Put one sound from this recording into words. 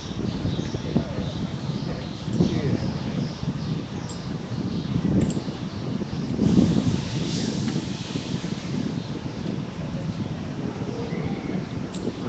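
A crowd of adults talks outdoors.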